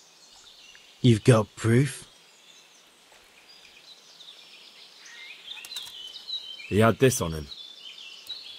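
Another man answers in a low, muffled voice nearby.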